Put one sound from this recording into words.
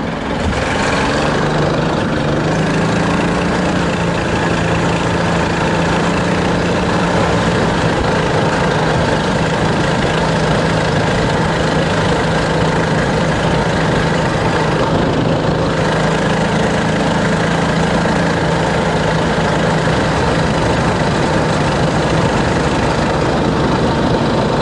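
Tyres crunch and rumble over a gravel road.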